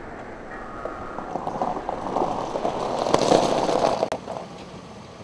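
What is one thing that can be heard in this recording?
A car rolls past over gravel.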